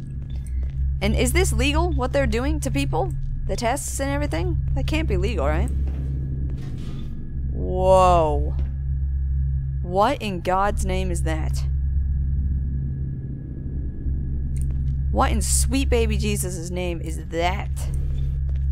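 A young woman talks into a microphone with animation, close by.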